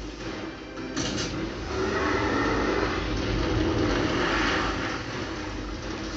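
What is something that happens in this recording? Video game gunfire rattles through a television speaker, heard across a room.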